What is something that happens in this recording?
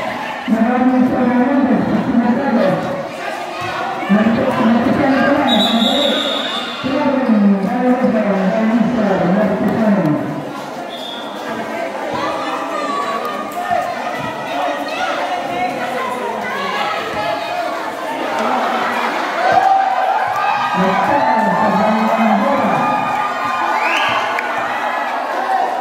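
A crowd of spectators chatters and shouts close by.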